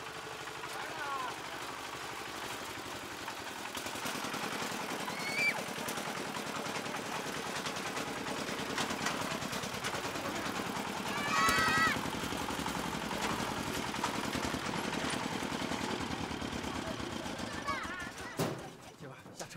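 A small tractor engine chugs steadily close by.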